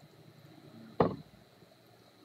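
A glass jug knocks down onto a table.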